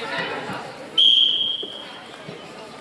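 A referee's whistle blows once, sharp and short.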